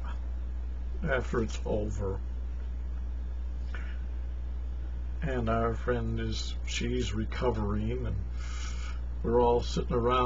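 An elderly man speaks calmly close to a microphone, in short bursts with pauses.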